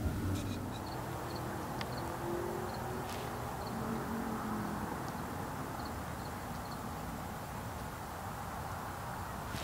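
A goose plucks at grass with soft tearing sounds.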